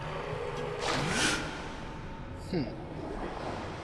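Bubbles gurgle and rush underwater.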